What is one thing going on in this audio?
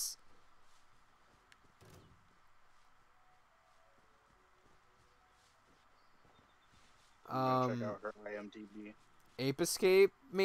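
Footsteps run through grass.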